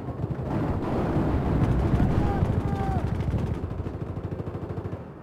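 Gunshots crackle rapidly in a battle.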